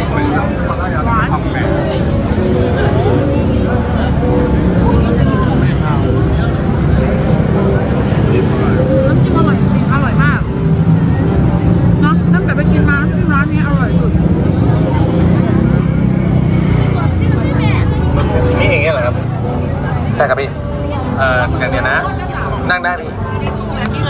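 A crowd murmurs outdoors on a busy street.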